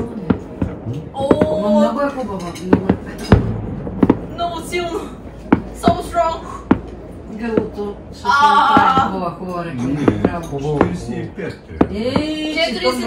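An older man talks casually nearby.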